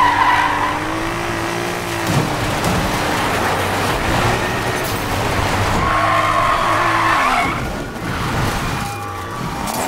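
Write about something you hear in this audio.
Tyres screech as a car drifts on dirt.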